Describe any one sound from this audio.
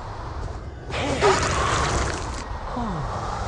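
A weapon swings with a loud whoosh and strikes.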